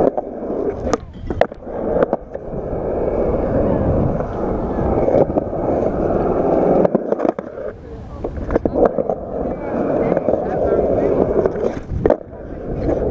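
Skateboard wheels clack over cracks in the concrete.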